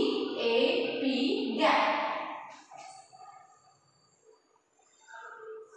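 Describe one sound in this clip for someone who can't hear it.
A woman speaks clearly and calmly, close by.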